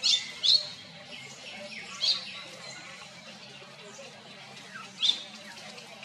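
Leaves rustle as a monkey climbs through the branches.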